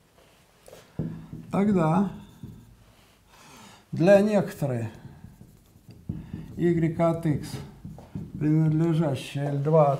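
An elderly man speaks calmly into a microphone, pausing often.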